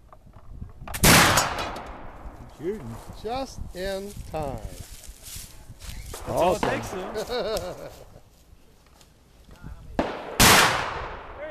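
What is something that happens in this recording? A shotgun fires a loud blast outdoors that echoes through the woods.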